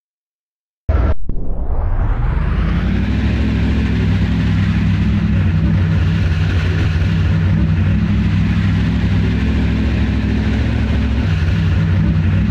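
A race car engine idles with a steady low hum.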